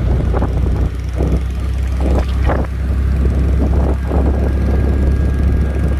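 A motorbike engine hums as it rides along a road.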